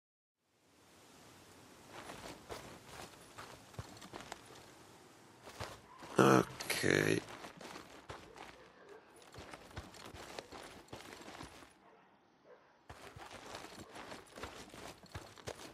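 Boots crunch on dirt ground in footsteps.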